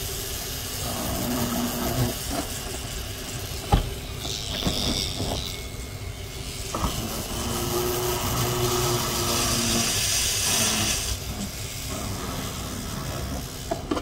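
A small rotary tool whirs as it polishes a hard shell.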